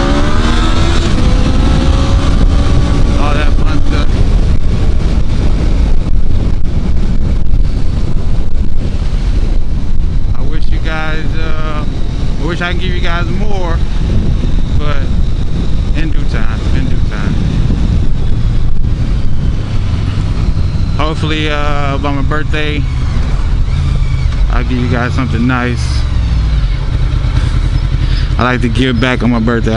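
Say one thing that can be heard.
A motorcycle engine hums steadily and rises and falls as it rides.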